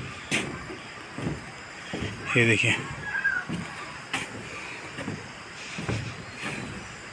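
Footsteps thud steadily on a footbridge.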